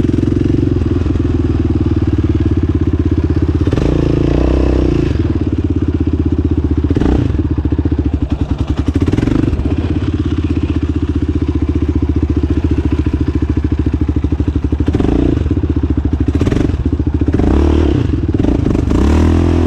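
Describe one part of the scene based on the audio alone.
A quad bike engine roars and revs loudly up close.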